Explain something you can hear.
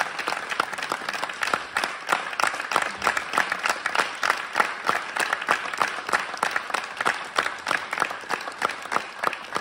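A band plays live in an echoing hall.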